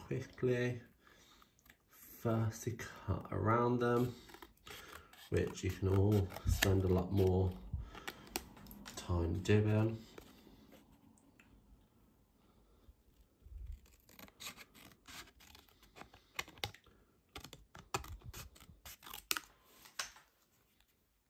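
Scissors snip through thick paper in short, crisp cuts.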